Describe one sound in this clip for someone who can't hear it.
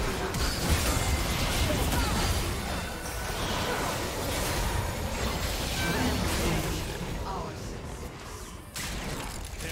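Magic spells crackle, whoosh and burst in a fast fight in a video game.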